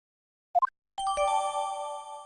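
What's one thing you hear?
A bright chime rings out.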